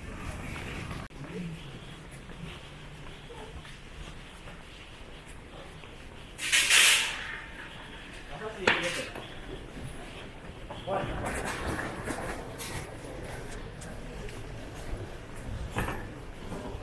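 Footsteps of several people walk across a hard floor in a large echoing hall.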